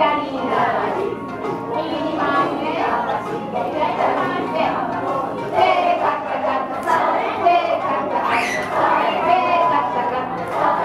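A crowd of women sing and chant together in a large echoing hall.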